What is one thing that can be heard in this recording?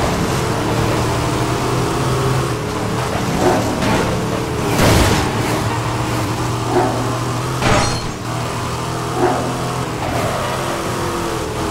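Car tyres hiss on the road.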